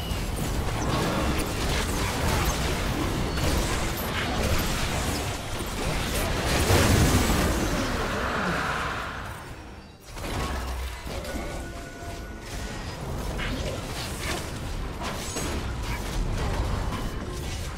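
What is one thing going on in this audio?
Game spell effects and attacks crackle and whoosh during a fight.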